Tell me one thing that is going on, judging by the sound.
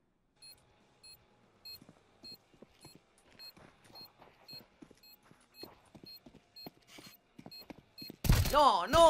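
Footsteps patter softly on stone.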